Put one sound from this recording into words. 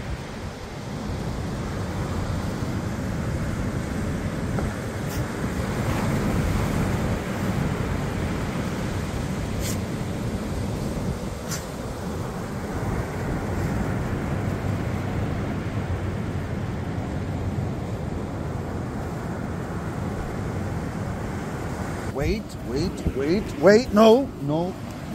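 Waves break and wash onto the shore nearby.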